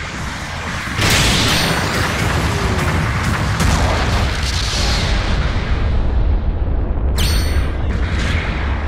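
A heavy gun fires in loud blasts.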